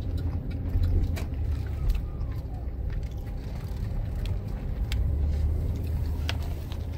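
A car engine hums low and steady from inside the car as it drives slowly.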